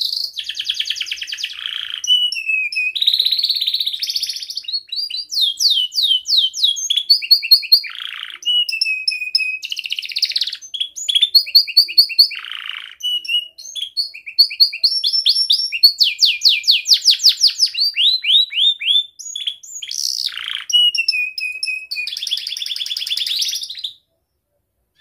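A canary sings close by in a long, varied song of trills, chirps and warbles.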